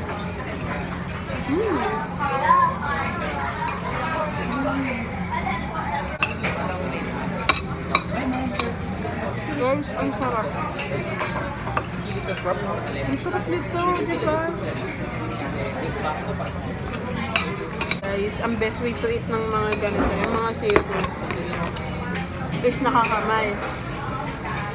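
Metal cutlery clinks against plates.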